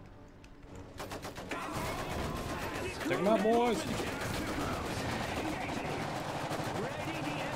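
Gunfire crackles.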